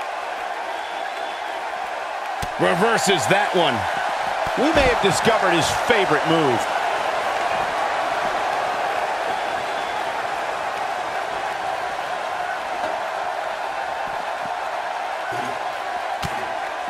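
A large crowd roars and cheers steadily in an echoing arena.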